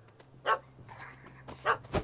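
A dog howls.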